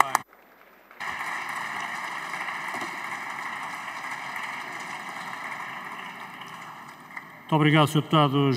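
A crowd applauds in a large hall.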